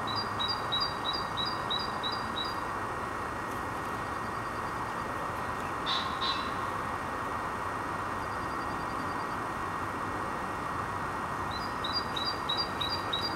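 A dog gnaws and chews on a stick.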